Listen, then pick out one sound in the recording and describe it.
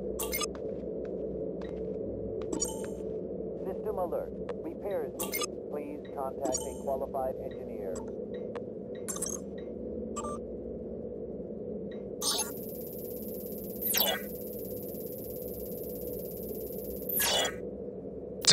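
Short electronic beeps and clicks sound as buttons are pressed.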